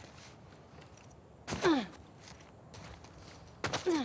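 A person lands with a heavy thud after a jump.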